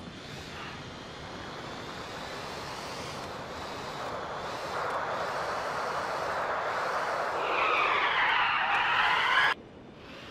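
A car engine revs and roars louder as the car speeds up.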